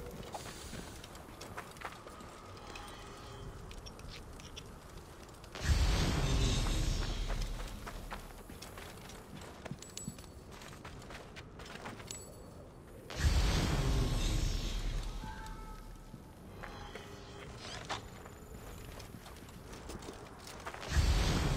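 Footsteps crunch quickly on dry gravel and sand.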